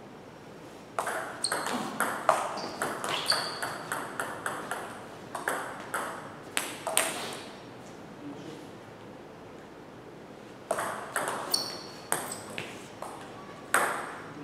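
A table tennis ball clicks back and forth off paddles and the table in a quick rally, echoing in a large hall.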